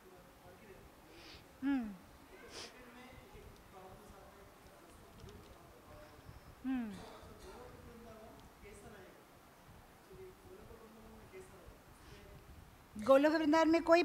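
A woman speaks softly into a microphone, with long pauses.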